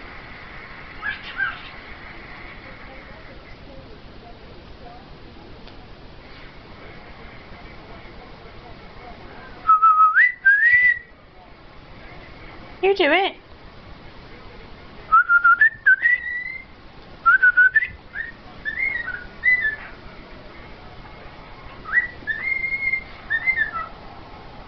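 A cockatiel whistles loud, rising and falling tunes close by.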